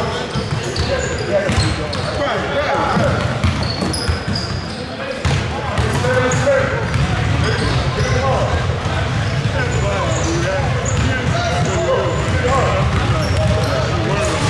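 Young people talk and call out across the echoing hall.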